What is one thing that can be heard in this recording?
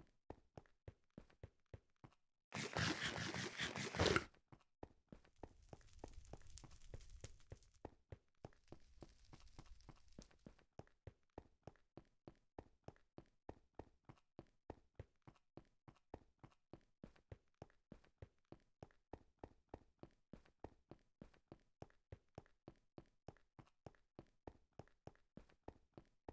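Quick, even footsteps tap on hard stone.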